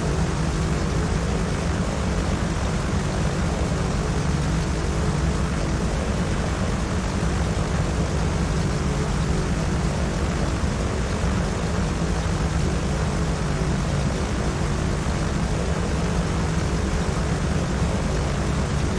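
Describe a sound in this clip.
Twin propeller engines drone steadily and loudly.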